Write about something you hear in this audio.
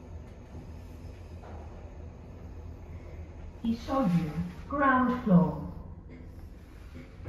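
An elevator car hums low and steady as it moves.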